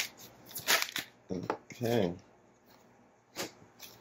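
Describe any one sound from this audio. A card is laid down on a table.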